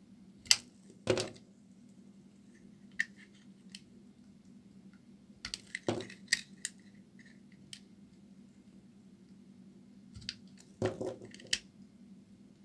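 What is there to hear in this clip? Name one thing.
A knife blade scrapes and cuts through a bar of soap in short strokes.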